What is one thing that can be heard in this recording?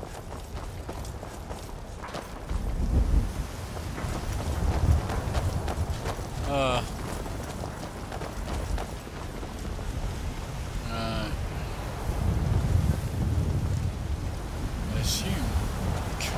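Footsteps run over stone paving.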